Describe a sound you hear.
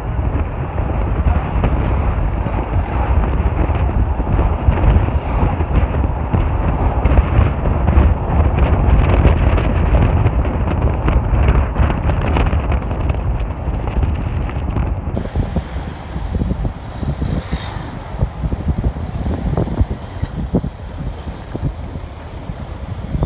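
A car engine hums steadily from inside a moving vehicle.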